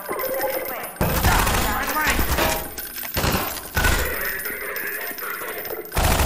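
Shotgun blasts boom and echo down a corridor.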